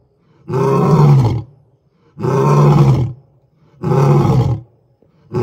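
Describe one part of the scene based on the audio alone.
A lion roars in deep, repeated bursts close by.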